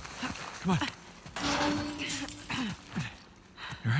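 A young woman grunts as she is pulled up.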